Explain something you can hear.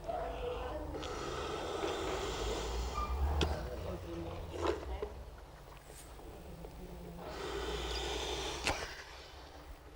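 A man blows breaths into a training dummy.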